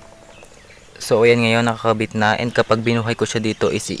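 A small plastic plug clicks into a connector.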